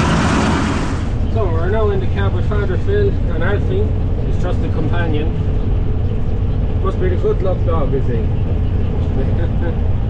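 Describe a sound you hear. A combine harvester engine drones steadily, muffled inside a cab.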